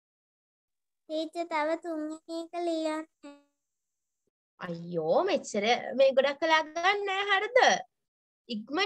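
A young boy speaks over an online call.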